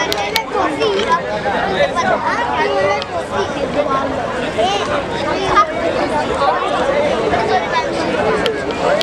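A crowd of young men chatter outdoors.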